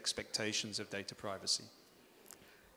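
A young man speaks into a microphone, heard through a loudspeaker in an echoing hall.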